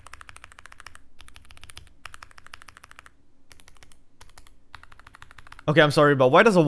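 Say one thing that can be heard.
Keys clack softly as fingers type on a keyboard.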